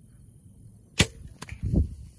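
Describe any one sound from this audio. A bowstring snaps sharply as an arrow is released.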